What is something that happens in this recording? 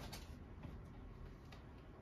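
Keys click lightly on a keyboard.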